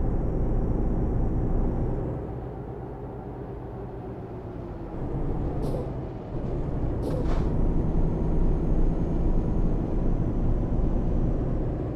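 Tyres roll on a road.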